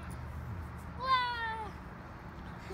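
A young girl squeals with excitement close by.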